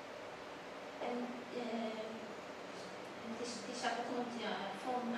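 A young woman speaks calmly into a microphone, heard through a loudspeaker in an echoing room.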